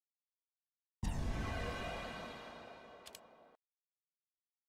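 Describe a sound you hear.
A short electronic chime rings out and fades.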